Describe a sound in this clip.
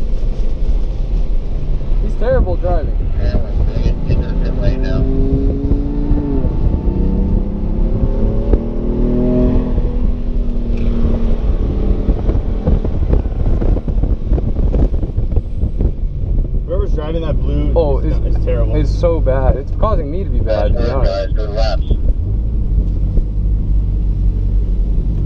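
A car engine roars and revs steadily up and down.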